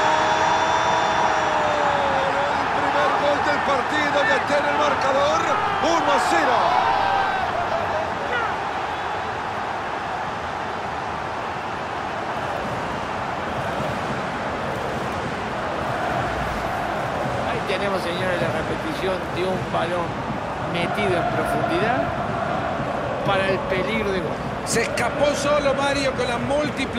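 A large stadium crowd cheers and sings loudly, then settles to a steady roar.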